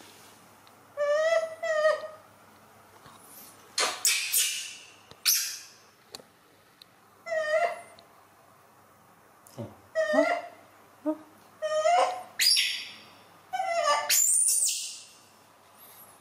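A small monkey squeaks and coos in short calls.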